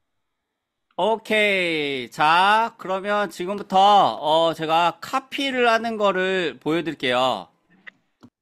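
A young woman sings through an online call.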